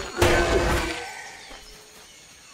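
A magic spell bursts with a loud whoosh and fades.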